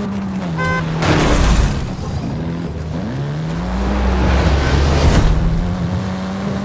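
Tyres skid and scrape over dirt.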